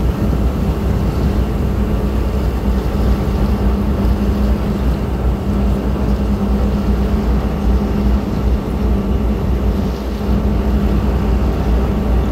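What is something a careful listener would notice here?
Wind buffets the microphone outdoors in a steady low rumble.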